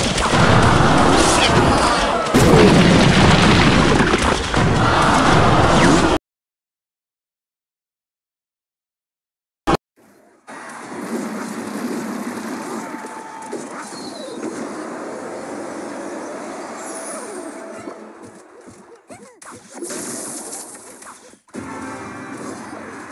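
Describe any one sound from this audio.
Small fighters clash with clangs and thuds in a busy game battle.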